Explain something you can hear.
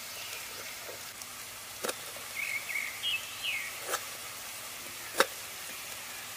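A knife cuts through a tomato.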